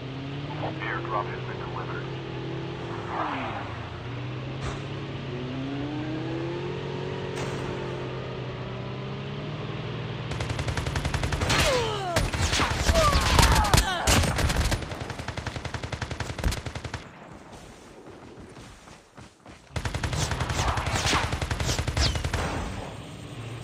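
A vehicle engine drones steadily, rising and falling in pitch.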